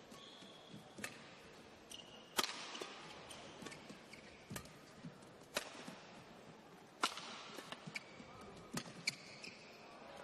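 Rackets strike a shuttlecock back and forth with sharp pops in a large echoing hall.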